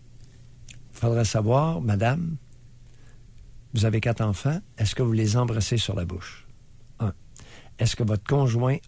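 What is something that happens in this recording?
A man speaks with animation close by.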